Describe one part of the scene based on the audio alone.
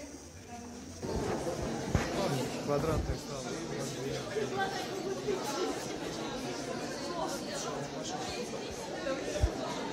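A middle-aged woman speaks with animation close by.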